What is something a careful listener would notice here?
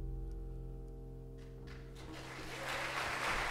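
A piano chord rings out and slowly fades in a large hall.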